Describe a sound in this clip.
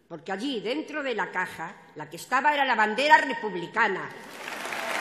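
An elderly woman speaks with emotion into a microphone over loudspeakers.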